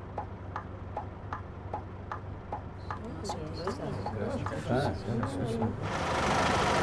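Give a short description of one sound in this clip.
A bus turn signal ticks steadily.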